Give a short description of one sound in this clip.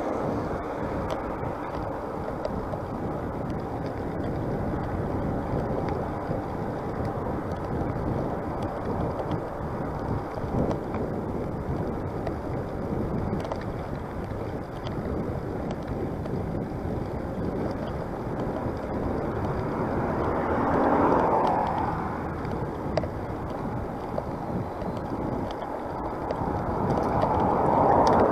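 Wind buffets the microphone with a steady low rumble.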